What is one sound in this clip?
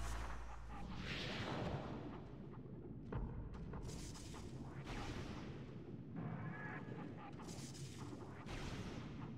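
A metal ball rolls and bounces with rumbling thuds.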